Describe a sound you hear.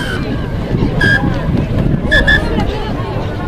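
A referee's whistle blows short blasts.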